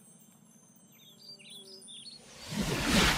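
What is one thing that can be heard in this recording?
Small birds chirp in quick bursts.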